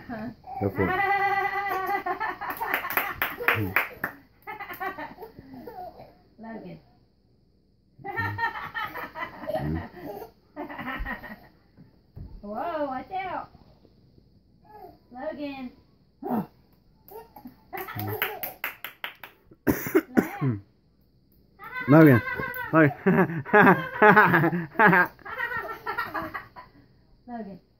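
A toddler laughs and squeals with delight close by.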